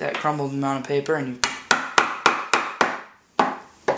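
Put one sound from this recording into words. A rod knocks repeatedly inside a cardboard tube.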